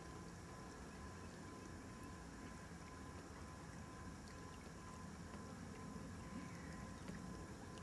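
Small lake waves lap gently on a gravel shore.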